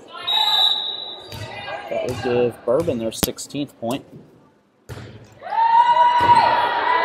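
A referee's whistle blows long and shrill.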